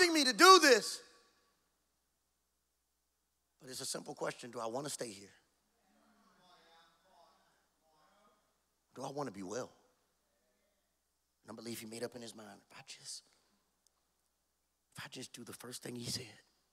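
A man speaks expressively into a microphone, in bursts with pauses.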